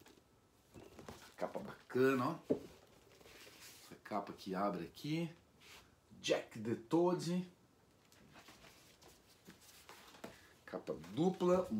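A cardboard record sleeve rustles as it is handled.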